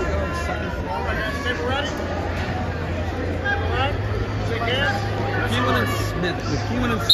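Spectators shout and cheer from the stands.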